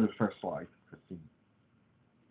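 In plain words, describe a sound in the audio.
A man speaks briefly over an online call.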